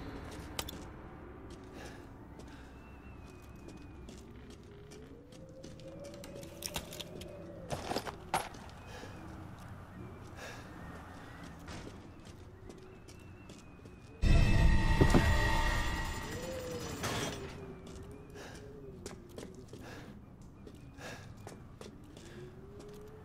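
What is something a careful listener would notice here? Footsteps tread slowly across a stone floor.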